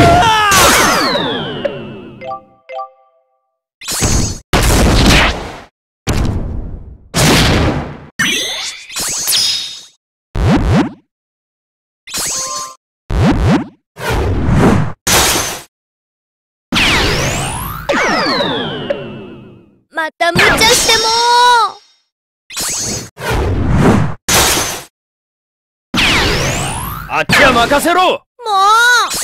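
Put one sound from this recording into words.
Magical chimes and swooshes ring out.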